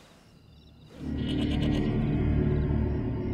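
A dog barks nearby outdoors.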